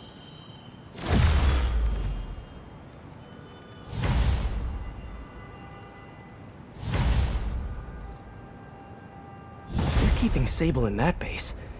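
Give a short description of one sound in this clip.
A bright whooshing chime swells and fades several times.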